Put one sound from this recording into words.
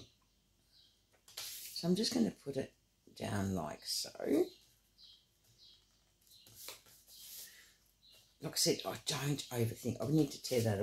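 Paper rustles softly as hands handle it.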